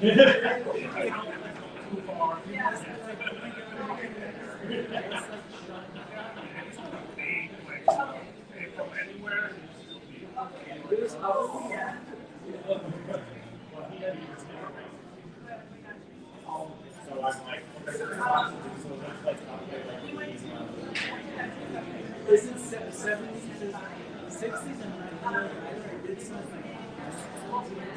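Several men and women chat at nearby tables.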